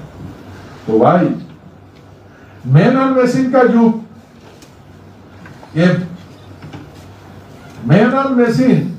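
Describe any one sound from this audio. A middle-aged man speaks loudly and forcefully into a microphone, in short bursts with pauses.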